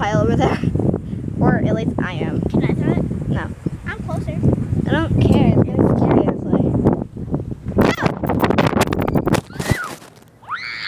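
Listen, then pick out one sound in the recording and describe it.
A young child talks excitedly close by.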